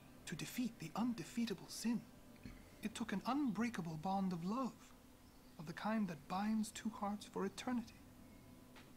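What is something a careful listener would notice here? A man speaks calmly and slowly in a deep voice.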